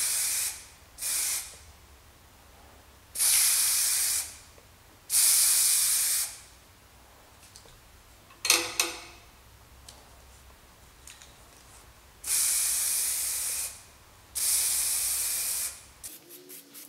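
Spray paint hisses out in short bursts.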